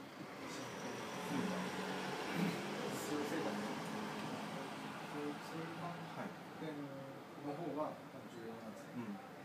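Several men talk calmly nearby.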